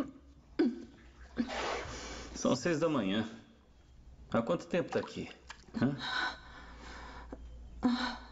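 A young woman sobs and breathes heavily.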